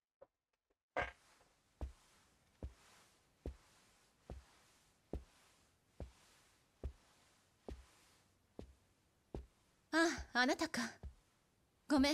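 Footsteps walk slowly and evenly on a hard floor indoors.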